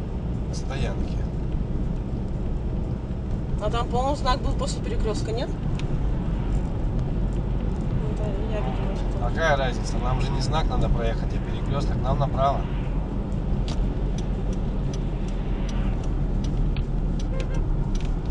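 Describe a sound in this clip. A car drives along a road with a steady low rumble.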